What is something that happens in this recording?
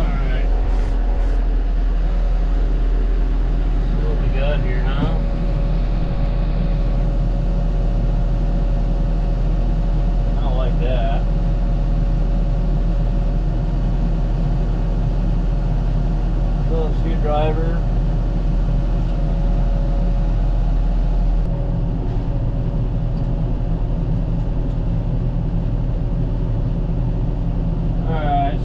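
A tractor engine hums steadily inside a closed cab.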